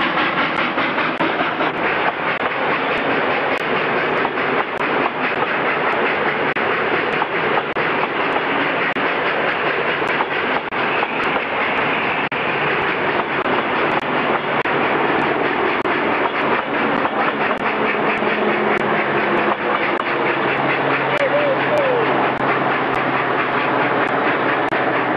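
Train wheels clatter and rumble over the rails.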